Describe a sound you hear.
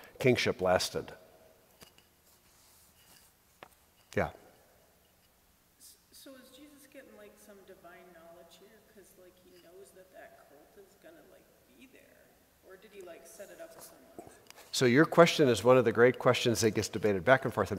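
An elderly man speaks calmly, reading out in a large echoing hall.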